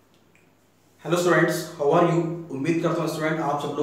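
A young man speaks clearly and steadily close to the microphone.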